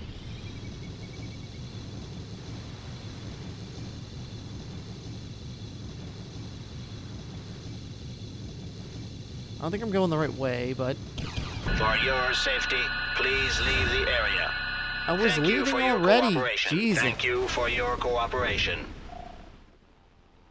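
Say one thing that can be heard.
A hovercraft engine hums as the craft skims over water.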